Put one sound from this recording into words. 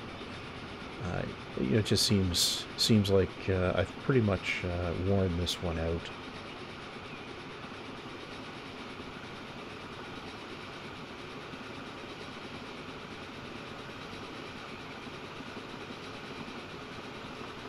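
A train rolls steadily along the rails.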